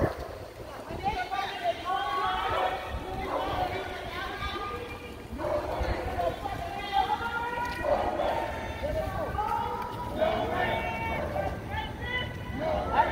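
A group of adults sings together outdoors.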